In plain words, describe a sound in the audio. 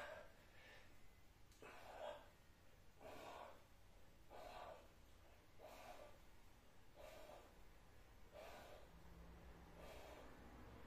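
A man breathes out hard in a steady rhythm.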